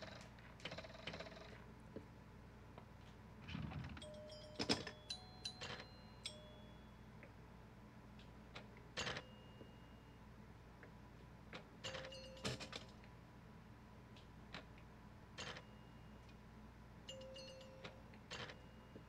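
A pinball ball knocks sharply against bumpers and flippers.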